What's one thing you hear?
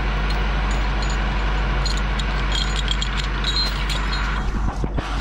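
A metal chain clinks and rattles.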